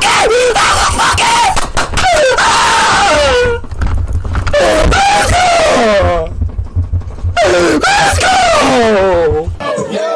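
A young man shouts and yells excitedly into a microphone, close up.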